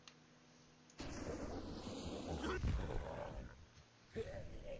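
A spray flame roars and hisses in bursts.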